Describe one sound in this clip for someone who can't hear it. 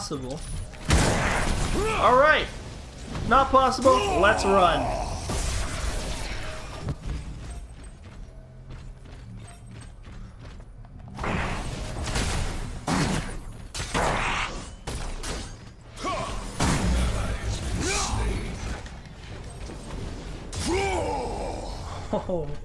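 Energy blasts zap and crackle in short bursts.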